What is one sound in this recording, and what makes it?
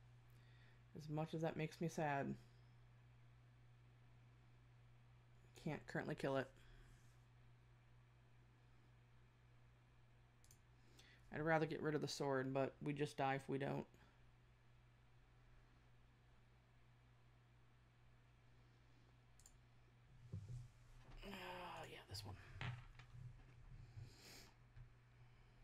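A young woman talks into a close microphone in short, calm bursts.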